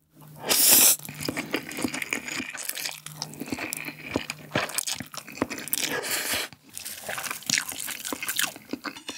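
A young man chews noisily.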